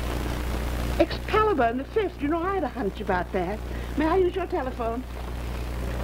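An elderly woman reads aloud with animation, close by.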